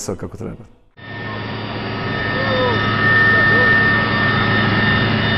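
An aircraft engine drones steadily from inside the cabin.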